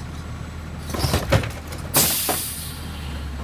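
A mechanical arm dumps a bin with loud clatters and bangs.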